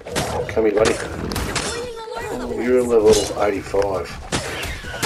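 A large creature growls and bellows.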